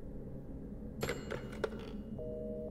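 A telephone handset is lifted off its cradle with a clatter.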